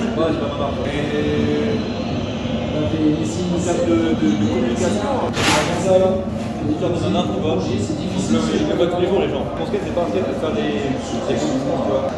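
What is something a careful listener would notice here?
A young man talks casually and with animation, close by.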